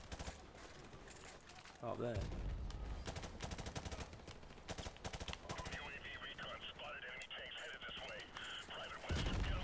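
Rapid gunshots crack close by and echo.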